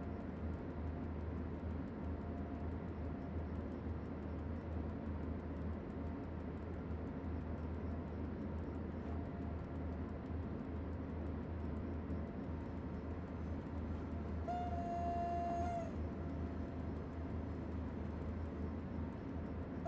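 A locomotive rumbles steadily as it runs along the track.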